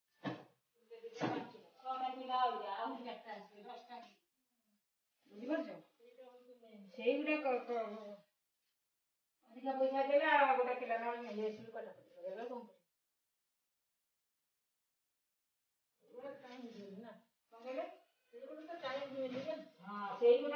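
A woman speaks nearby with animation.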